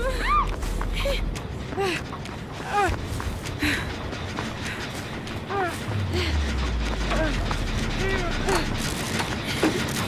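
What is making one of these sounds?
Footsteps run over grass and wooden boards.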